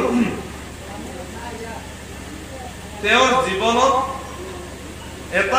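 A young man speaks into a microphone over a loudspeaker, with pauses.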